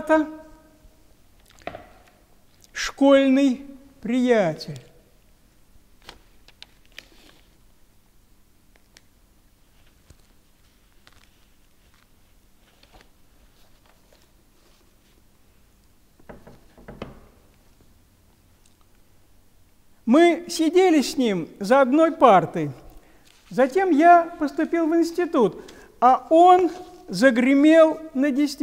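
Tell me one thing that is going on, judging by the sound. An elderly man speaks calmly and clearly into a close microphone.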